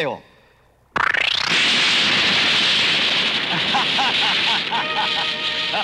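An explosion roars and keeps rumbling with crackling sparks.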